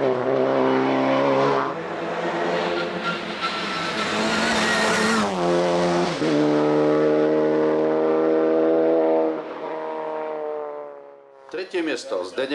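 A racing car engine roars and revs loudly as the car speeds past.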